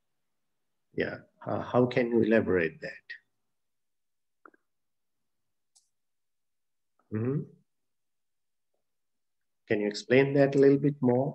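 A man speaks calmly and slowly, close by, with pauses.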